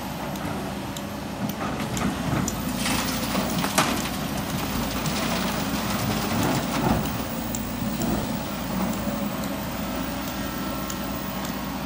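A man shovels rocks in a truck bed with scraping sounds.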